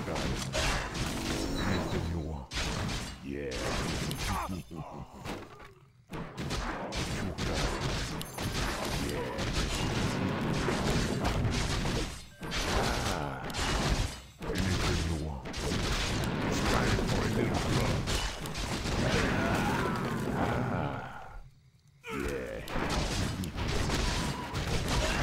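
Weapons clash and spells crackle in a fight.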